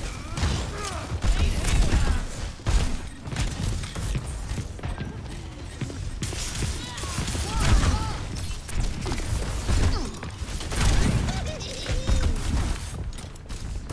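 Game gunfire thumps and bangs in rapid bursts.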